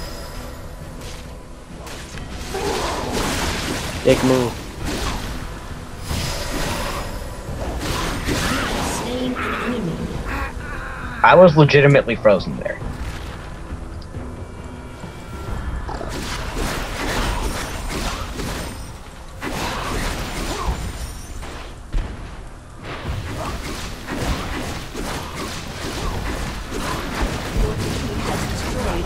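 Spell blasts and sword hits clash and crackle in a battle game.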